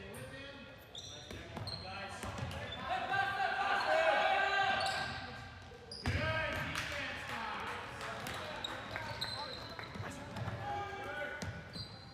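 Young men shout to each other, echoing in a large hall.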